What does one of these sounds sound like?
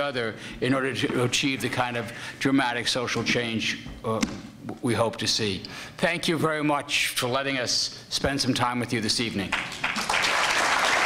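An older man speaks with animation into a microphone, his voice filling a large hall.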